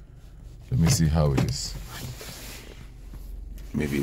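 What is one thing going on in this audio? A car door lock button clicks under a finger.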